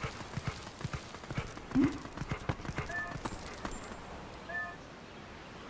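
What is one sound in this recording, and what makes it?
Paws patter quickly on hard ground.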